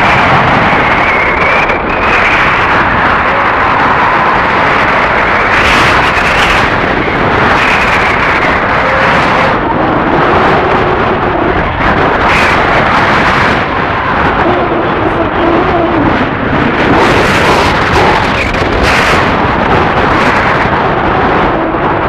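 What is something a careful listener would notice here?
Strong wind rushes loudly past, high in the open air.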